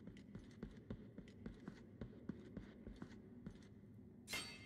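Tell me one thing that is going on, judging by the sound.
Quick sword slashes whoosh and clang in a game.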